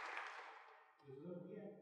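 A young woman speaks into a microphone through loudspeakers.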